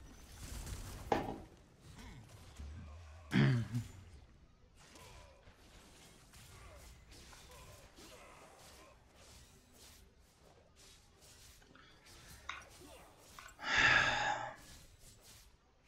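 Video game combat sounds clash and whoosh in bursts.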